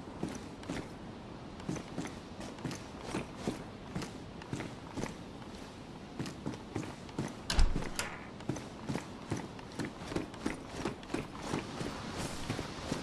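Footsteps thud steadily on a hard floor indoors.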